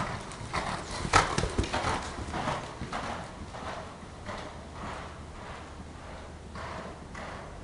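A horse's hooves thud on soft dirt close by, then move away.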